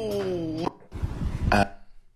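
A man bursts out laughing, close to a microphone.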